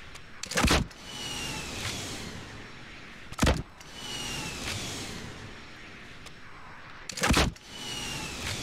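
A rocket whooshes through the air with a falling whistle.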